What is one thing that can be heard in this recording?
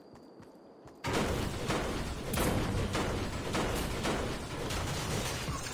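A pickaxe clangs repeatedly against metal.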